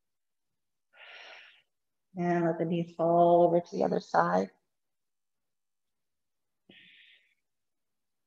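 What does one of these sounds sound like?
A woman breathes out slowly.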